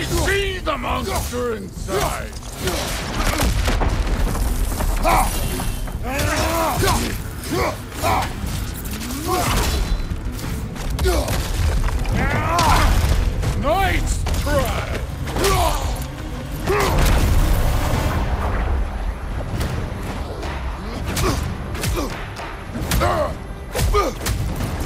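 Heavy blows land with loud, deep thuds.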